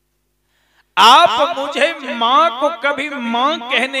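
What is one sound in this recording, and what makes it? A man sings loudly and with feeling into a microphone.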